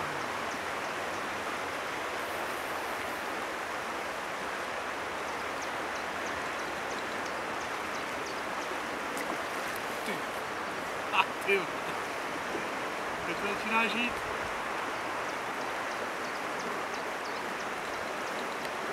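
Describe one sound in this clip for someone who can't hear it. A river flows and ripples steadily.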